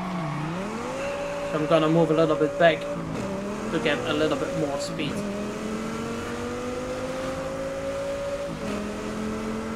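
A sports car engine roars as it accelerates, its pitch climbing and dropping with each gear change.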